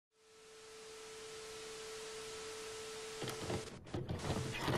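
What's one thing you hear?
A television hisses with static.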